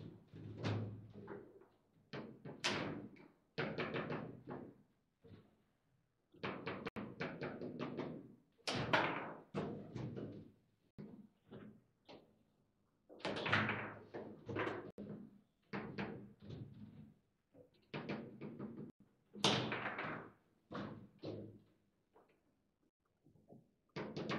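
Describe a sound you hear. A table football ball clacks against the plastic figures and the table walls.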